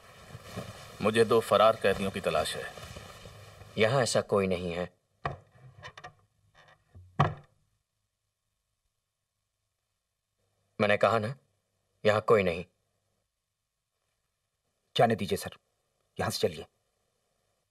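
A man speaks in a tense, low voice.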